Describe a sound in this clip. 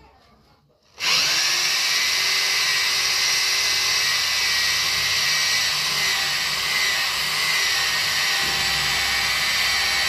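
A power drill whirs loudly and steadily into a wall.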